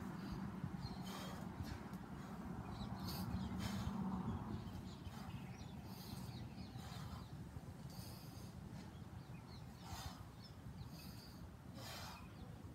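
A man breathes out sharply in short, rhythmic bursts.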